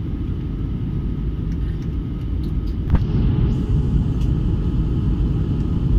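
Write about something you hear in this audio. A jet engine roars steadily with a deep, constant rumble inside an aircraft cabin.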